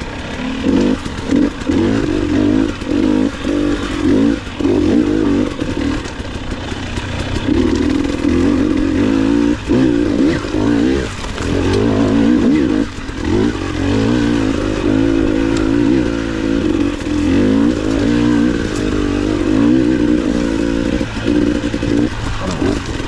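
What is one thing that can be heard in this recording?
A dirt bike engine revs up and down close by.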